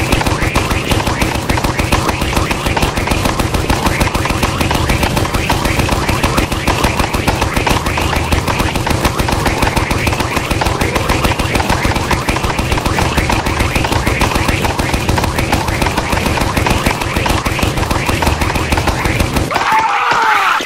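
A water blaster fires in rapid bursts of splashing.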